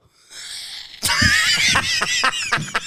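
A woman laughs loudly and heartily close to a microphone.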